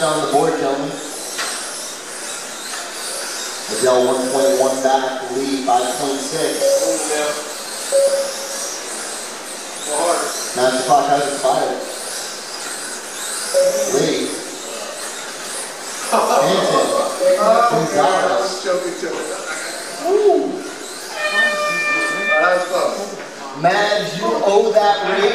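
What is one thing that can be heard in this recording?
Small electric model cars whine as they race around a track.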